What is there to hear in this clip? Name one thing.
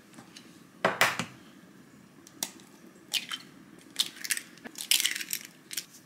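An eggshell cracks against a bowl.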